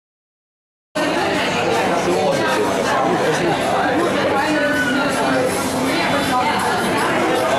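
Men and women chatter nearby in a busy indoor room.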